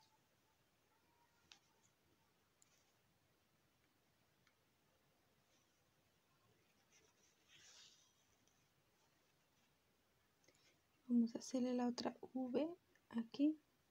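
Thread rustles softly as a needle is pulled through crocheted fabric.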